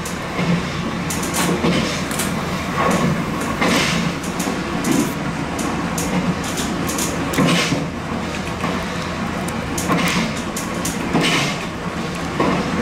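Train wheels clatter over rail joints at uneven intervals.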